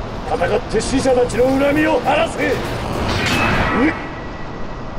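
A man shouts forcefully.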